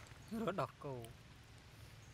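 Monkeys squeal and chatter nearby.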